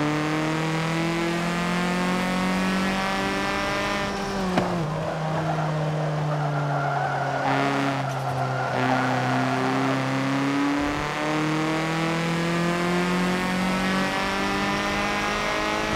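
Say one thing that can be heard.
A race car engine roars steadily, dropping in pitch as the car slows and then revving higher again.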